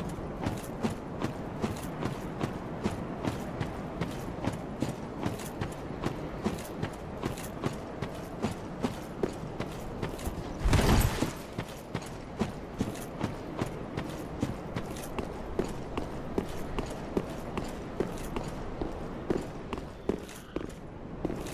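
Heavy armored footsteps run quickly over ground.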